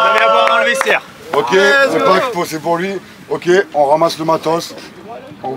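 A man speaks loudly to the group outdoors.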